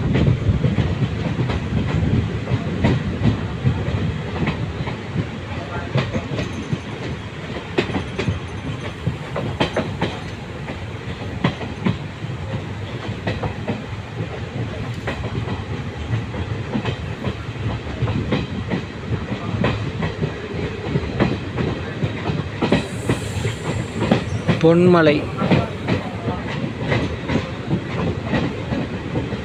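A passenger train rumbles along the tracks, heard from an open window.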